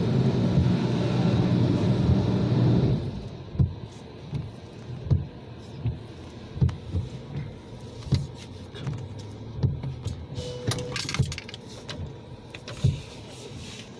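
Windshield wipers thump as they sweep back and forth.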